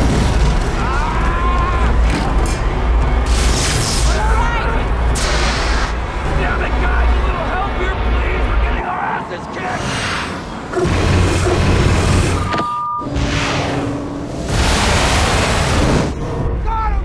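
A jet engine roars loudly.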